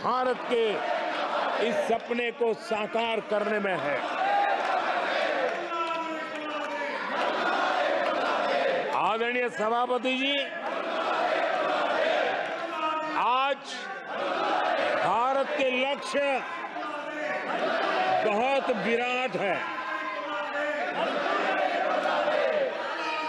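A crowd of people shout and clamour loudly in the background.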